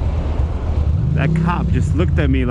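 A motorcycle engine revs up.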